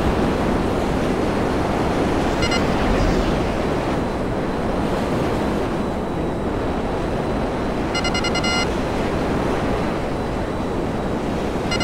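A jet engine roars steadily as a fighter plane flies.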